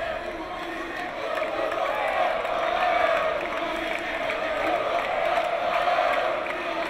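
A large indoor crowd murmurs and shouts, echoing in a big hall.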